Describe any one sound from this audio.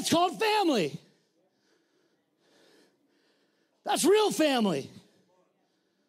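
A man sings loudly into a microphone in short, gliding phrases.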